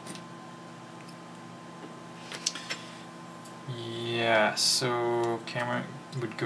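Small metal parts click softly against pliers.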